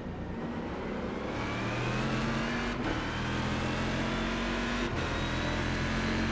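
A racing car engine roars steadily, its pitch rising as it speeds up.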